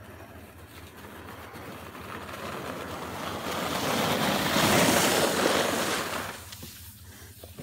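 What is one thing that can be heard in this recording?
A sled hisses over packed snow, growing louder as it comes near and then fading.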